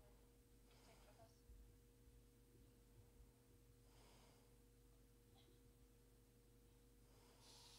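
A young man breathes softly close to a microphone.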